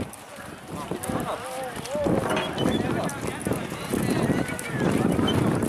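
A horse's hooves thud softly on dirt.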